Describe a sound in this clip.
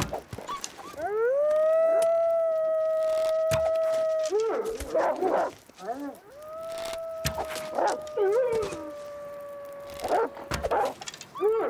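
Wolves howl nearby.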